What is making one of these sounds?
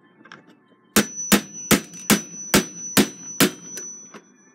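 A hammer taps sharply on metal in quick even blows.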